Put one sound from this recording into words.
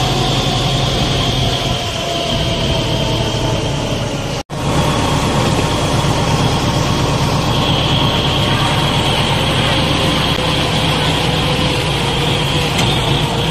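Water splashes and churns around tractor wheels.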